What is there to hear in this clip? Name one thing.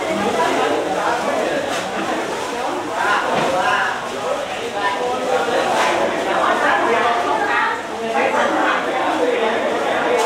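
A crowd of men and women chatter at once in a room with a slight echo.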